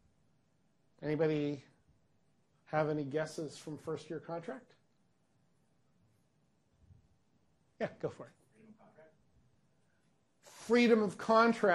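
A middle-aged man speaks with animation, pausing between phrases.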